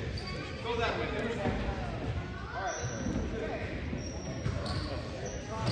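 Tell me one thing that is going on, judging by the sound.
Voices of spectators chatter in a large echoing gym.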